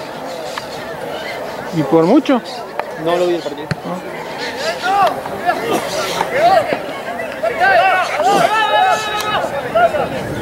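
A crowd of spectators cheers and calls out in the distance.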